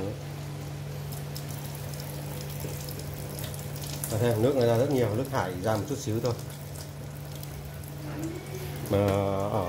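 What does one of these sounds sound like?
Water runs from a tap and splashes into a metal sink.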